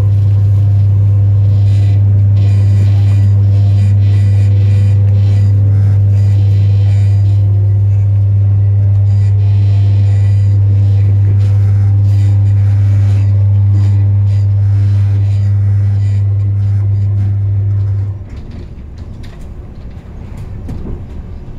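Wheels clatter rhythmically over rail joints.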